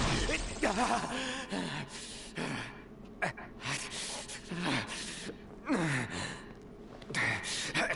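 A young man grunts and groans in pain.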